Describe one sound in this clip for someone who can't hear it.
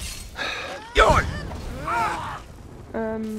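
A fiery blast bursts with a loud boom.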